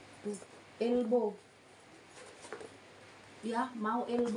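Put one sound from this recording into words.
Fabric rustles as a woman handles a cloth bag.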